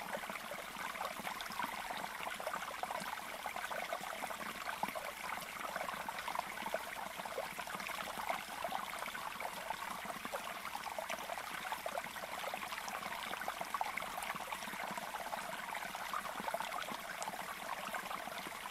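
Small birds chirp and twitter quickly and without a break.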